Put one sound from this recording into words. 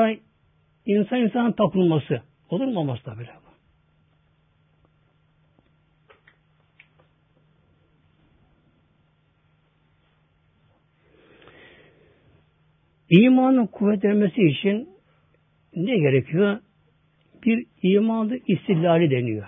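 An elderly man speaks slowly and earnestly into a microphone, with long pauses.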